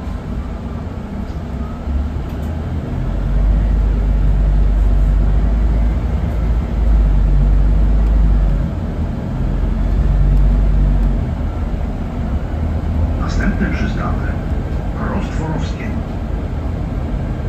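A bus engine rumbles low and steadily, swelling louder at times.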